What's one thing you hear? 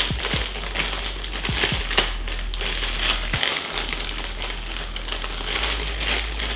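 Plastic packaging crinkles and rustles as it is handled.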